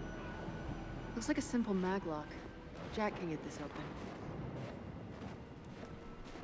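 Heavy boots crunch through snow.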